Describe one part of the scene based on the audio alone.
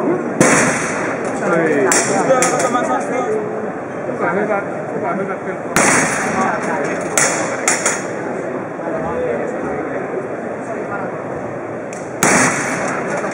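A heavy mallet slams down onto a striking pad with a loud thud.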